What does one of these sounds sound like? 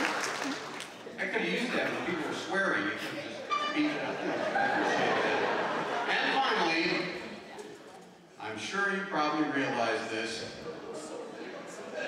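A man speaks with animation through a loudspeaker.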